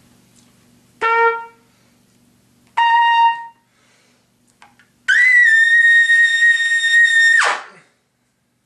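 A trumpet plays short notes and one long held note.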